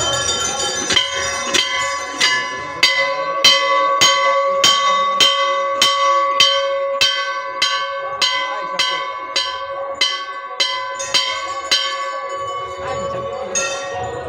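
A metal bell rings again and again in a steady rhythm, each strike ringing on.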